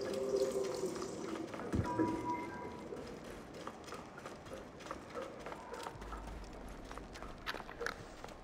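Footsteps scuff and tap on stone and sand.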